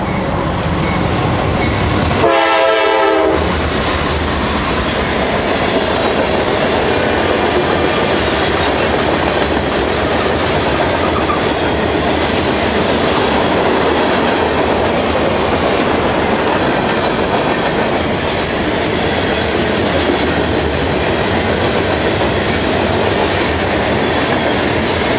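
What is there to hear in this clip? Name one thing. A freight train rumbles and clatters past close by.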